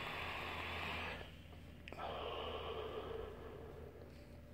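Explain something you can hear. A man blows out smoke with a soft, breathy hiss.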